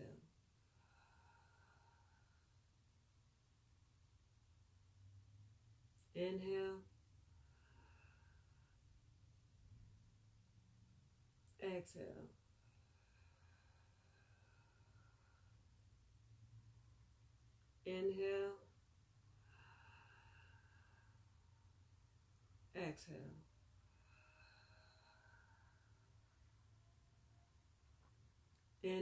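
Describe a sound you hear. A young woman breathes slowly and deeply.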